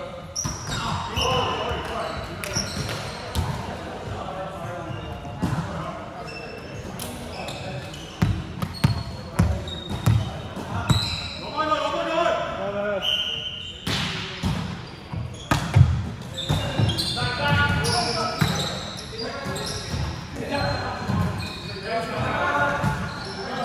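A volleyball thumps off hands and arms.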